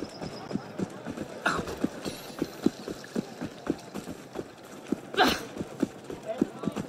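Quick footsteps run over cobblestones.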